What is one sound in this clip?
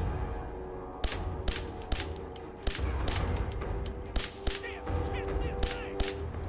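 A gun fires loud single shots in quick succession.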